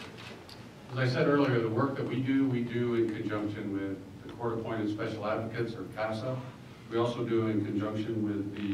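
A man speaks calmly into a microphone through loudspeakers.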